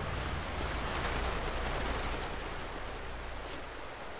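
Footsteps patter quickly across a hard roof.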